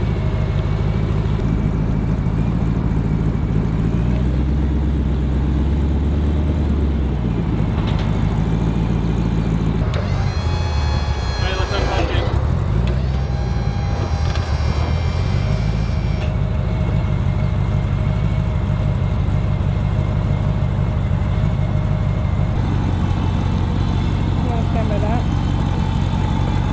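A large truck engine rumbles steadily close by.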